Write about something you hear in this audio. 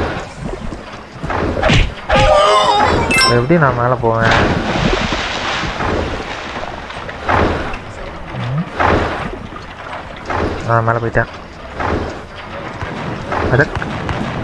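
Cartoonish game sound effects chime as a character jumps and collects treasure.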